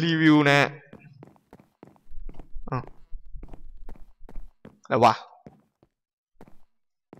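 Footsteps tap quickly on a wooden floor.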